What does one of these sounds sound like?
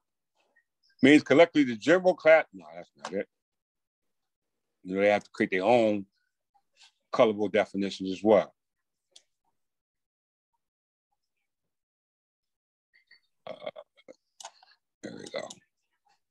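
A man speaks calmly through an online call, pausing between phrases.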